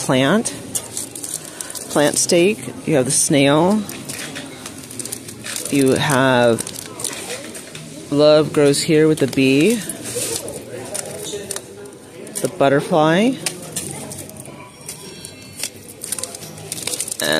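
Paper card packages rustle and crinkle as a hand sorts through them.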